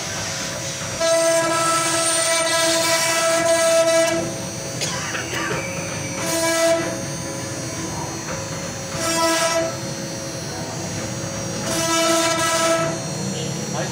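A router bit grinds into wood, rising to a louder shrill whine in bursts.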